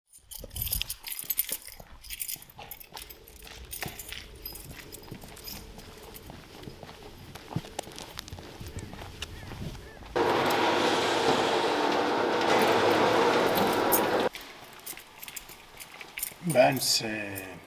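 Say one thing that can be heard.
A man's footsteps crunch on hard ground.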